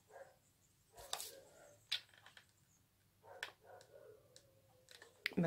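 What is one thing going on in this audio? A glue gun clicks and knocks against a surface.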